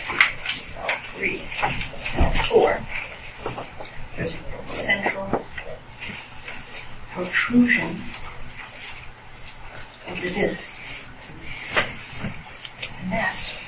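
A woman speaks calmly in a large, echoing room.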